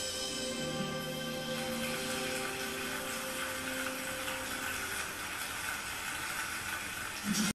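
A violin plays a sustained, flowing melody.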